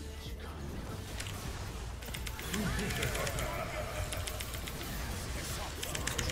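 Game spells crackle and burst in quick bursts.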